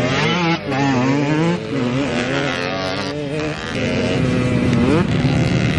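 Dirt bike engines whine and rev loudly, rising and falling in pitch.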